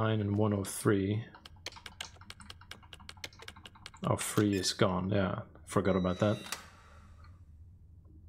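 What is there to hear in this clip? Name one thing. Keypad buttons beep as they are pressed.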